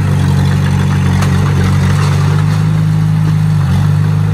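Dirt and stones scrape and crunch under a bulldozer's blade.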